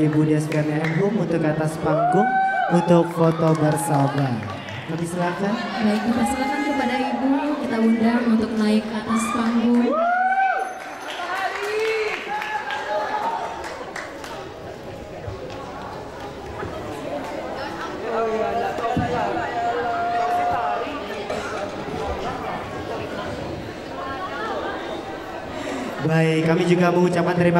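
Young performers sing together in a large echoing hall.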